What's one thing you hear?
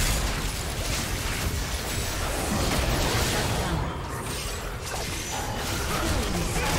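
Magical spell effects whoosh, crackle and burst during a fast fight.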